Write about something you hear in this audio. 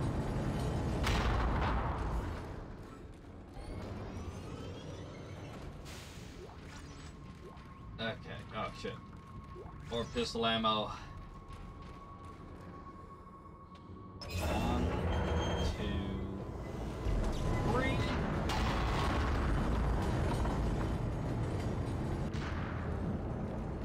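A weapon fires with a loud energy blast.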